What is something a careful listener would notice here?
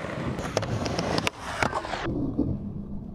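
A skateboard grinds along a metal rail.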